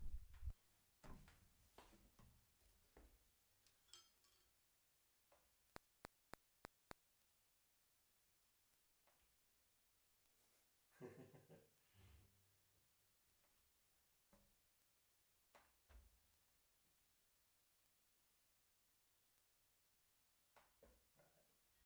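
A marimba plays soft, sparse notes.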